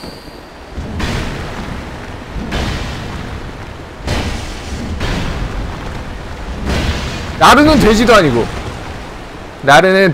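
Metal weapons clang and strike in a fight.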